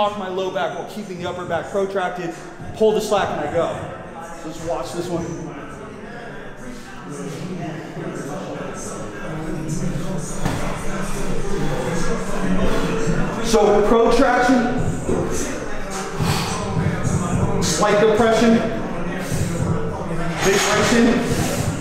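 A young man talks calmly and clearly into a close microphone.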